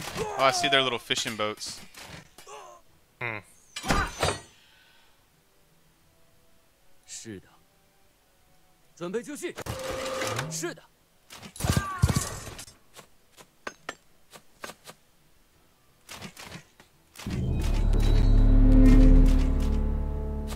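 Weapons clash in a skirmish.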